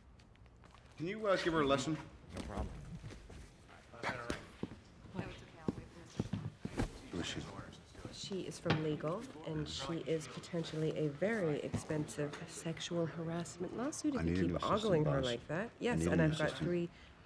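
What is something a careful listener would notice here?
A man talks calmly and wryly, close by.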